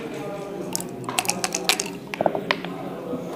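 Dice rattle and tumble across a wooden board.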